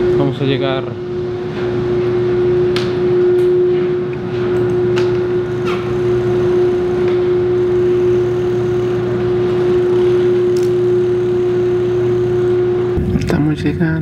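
A ferry's engine hums steadily.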